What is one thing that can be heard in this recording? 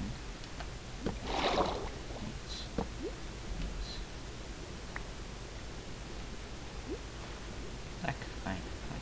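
Water bubbles and gurgles in short bursts.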